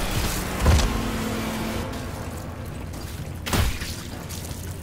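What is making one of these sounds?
Heavy blows thud and squelch into flesh.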